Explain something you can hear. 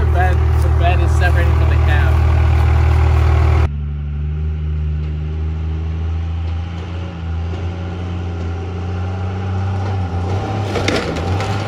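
A big diesel truck engine idles loudly nearby.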